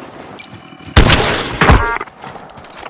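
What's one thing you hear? A rifle fires a single loud, echoing shot.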